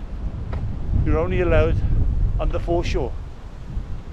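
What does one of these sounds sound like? An older man speaks close to a microphone.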